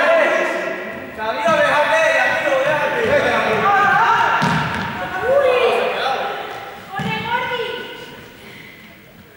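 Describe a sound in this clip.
Young people shout and call out to each other in a large echoing hall.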